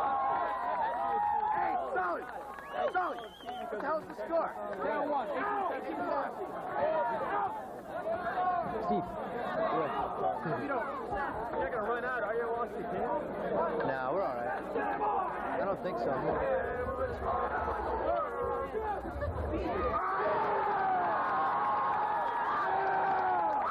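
A large crowd of young men and women chatters and calls out outdoors.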